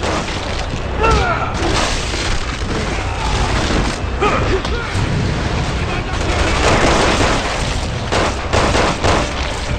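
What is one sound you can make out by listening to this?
A monster snarls and shrieks up close.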